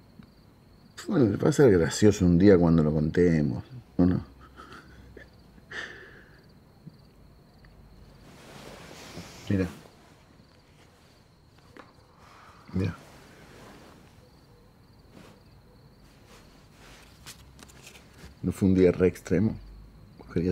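A man speaks softly close up.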